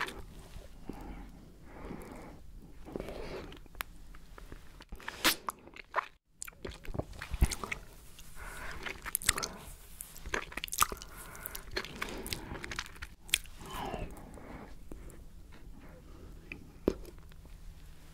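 A woman chews and crunches candy close to a microphone.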